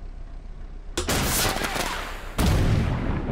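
A tank cannon fires with a loud bang.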